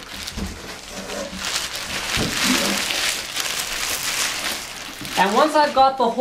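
Plastic wrapping rustles and crinkles close by.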